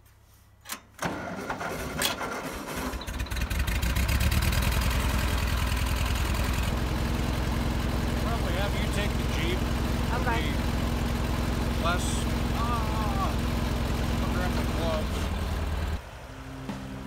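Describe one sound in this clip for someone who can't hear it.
A tractor engine cranks, starts and idles with a steady low rumble.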